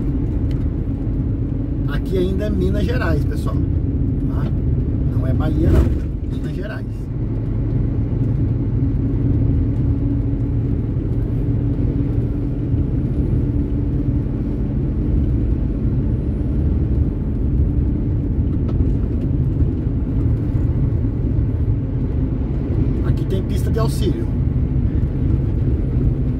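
A vehicle's engine drones steadily.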